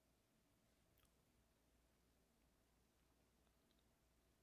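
A fork clinks against a ceramic plate.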